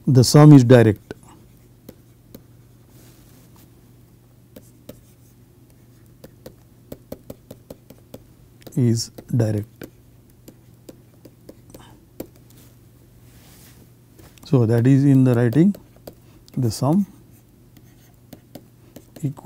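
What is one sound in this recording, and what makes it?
A pen taps and scratches softly on a writing tablet.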